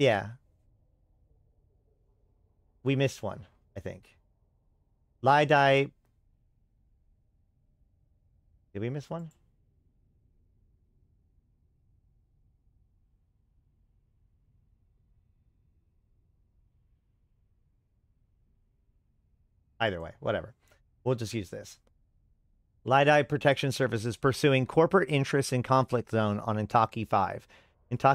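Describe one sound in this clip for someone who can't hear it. A man speaks calmly into a close microphone, in short bursts with long pauses.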